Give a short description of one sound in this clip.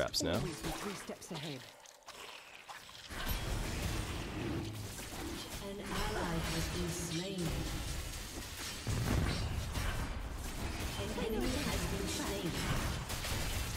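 Game spells whoosh and zap during a fight.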